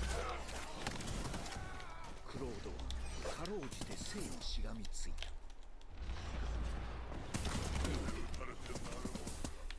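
Arrows whoosh through the air in a volley.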